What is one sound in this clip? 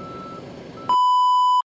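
A steady test tone sounds.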